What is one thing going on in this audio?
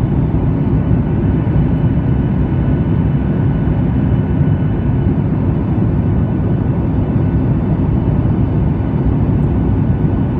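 A jet engine roars steadily inside an airplane cabin in flight.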